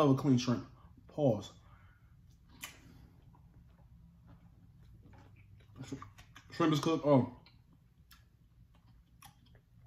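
A man chews food.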